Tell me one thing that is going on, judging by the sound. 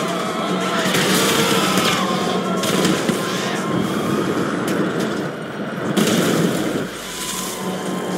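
Tyres screech on the road.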